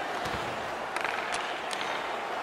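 A hockey stick slaps a puck.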